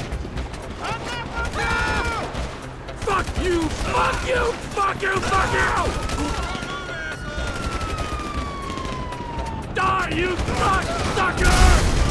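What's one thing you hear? A man shouts angrily.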